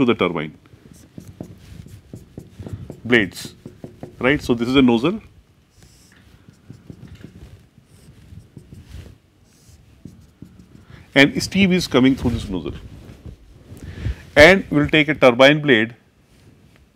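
A man lectures calmly, speaking fairly close.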